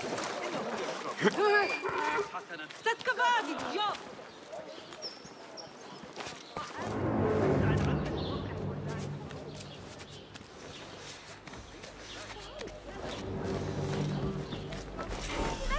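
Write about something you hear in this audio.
Hands and boots scuff and thud against stone walls during climbing.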